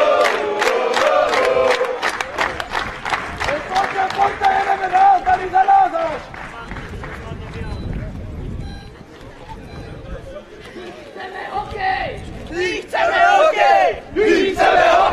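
A crowd of young men chants loudly outdoors.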